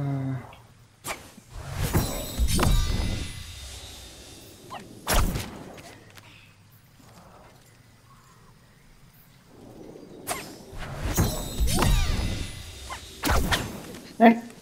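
A magical spell whooshes and shimmers.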